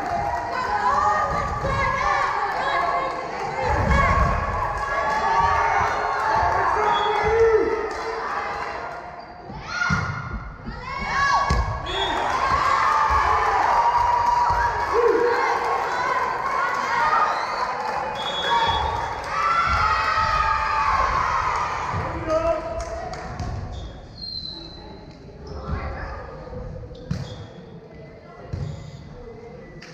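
Young girls shout and call out to one another in a large echoing gym.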